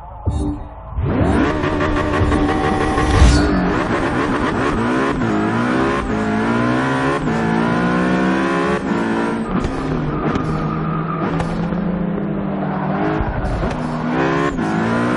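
A racing car engine roars loudly, revving up and shifting gears as the car speeds along.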